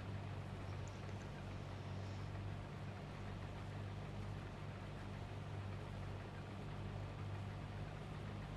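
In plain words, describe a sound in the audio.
Cut crop rustles and whirs through the harvester's header.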